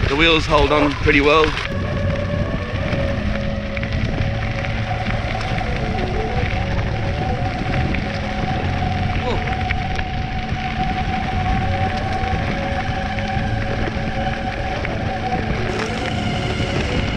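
Wheels rumble over a rough road.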